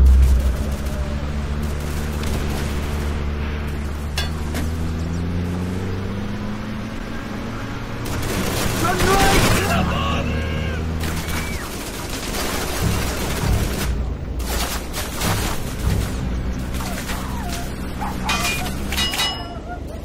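A tank engine rumbles steadily as the tank drives along.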